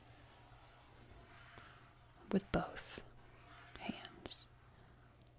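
Gloved hands brush and rub across a tabletop.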